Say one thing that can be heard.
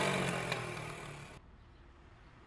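A scooter engine idles and then cuts off.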